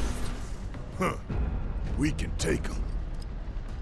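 A man speaks in a deep voice.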